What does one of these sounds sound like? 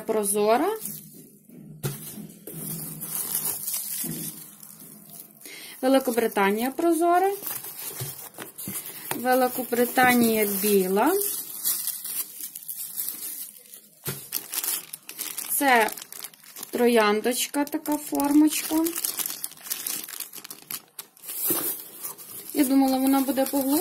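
Cardboard rustles.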